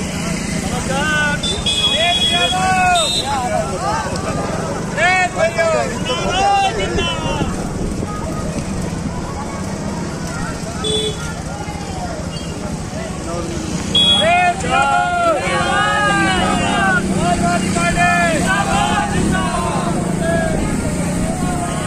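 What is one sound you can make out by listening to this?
A group of men shout slogans together outdoors.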